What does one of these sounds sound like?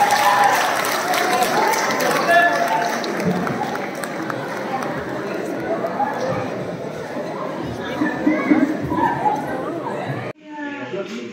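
A large indoor crowd of men and women chatters loudly.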